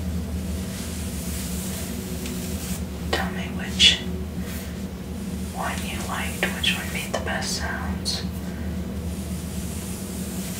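A comb rasps through wet hair.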